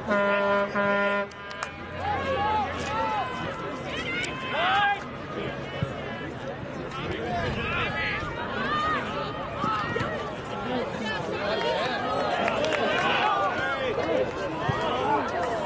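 Young men shout across an open field in the distance.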